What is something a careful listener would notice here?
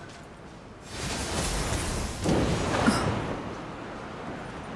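A strong gust of wind whooshes upward and then fades.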